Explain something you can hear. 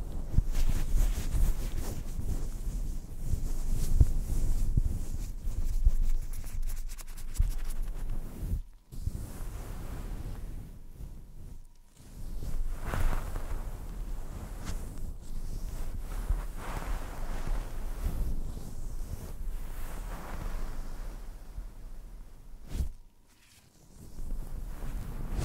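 A young woman whispers softly very close to a microphone.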